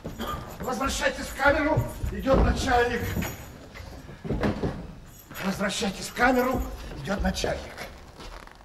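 A man speaks with strong feeling on a stage, in a large hall.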